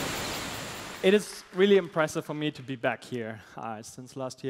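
A young man speaks through a headset microphone in a large hall.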